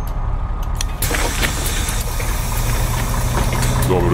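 Bus doors hiss and close with a pneumatic whoosh.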